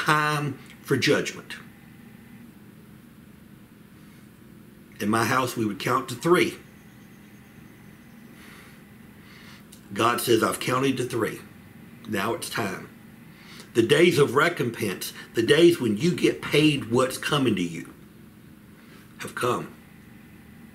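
A middle-aged man speaks calmly and close by, pausing between phrases.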